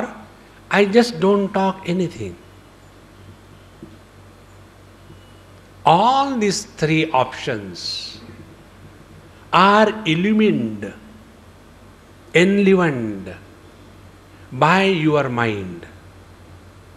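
An elderly man speaks slowly into a microphone, in short phrases with pauses.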